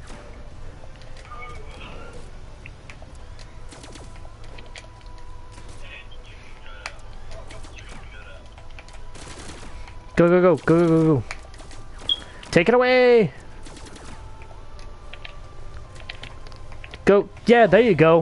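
Electronic game fighting sounds thump and swish throughout.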